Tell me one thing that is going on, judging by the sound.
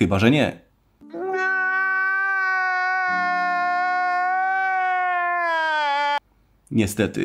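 A man wails loudly and tearfully in a long drawn-out cry.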